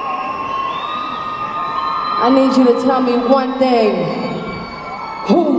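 A young woman sings through loudspeakers.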